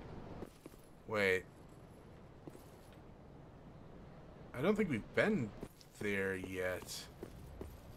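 Armored footsteps thud on cobblestones.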